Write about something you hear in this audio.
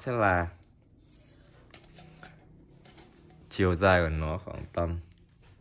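Metal tools clink lightly as they are handled.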